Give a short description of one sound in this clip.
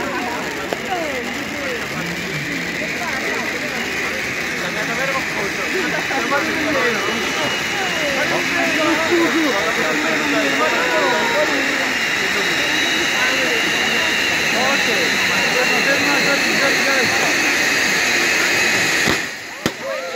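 Firework fountains hiss and spray loudly and steadily.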